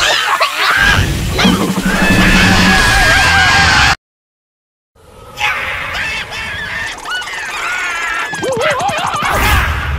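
A cartoon mouse squeals and shouts excitedly.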